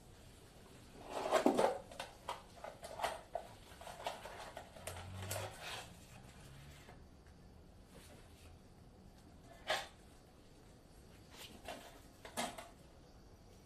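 A box rustles and rattles as it is handled.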